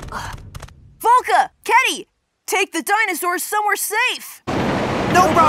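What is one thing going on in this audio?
A high, excited cartoon voice speaks in short bursts.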